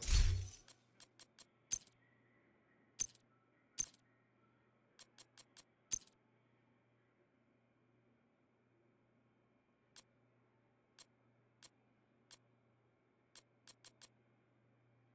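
Short sharp clicks tick one after another.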